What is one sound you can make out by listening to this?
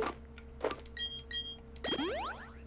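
A bright electronic chime sounds twice.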